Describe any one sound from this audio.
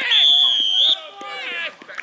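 A referee's whistle blows loudly.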